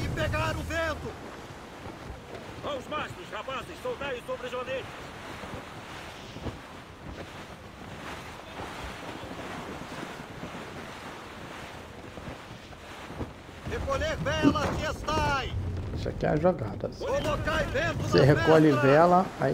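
A middle-aged man talks with animation into a nearby microphone.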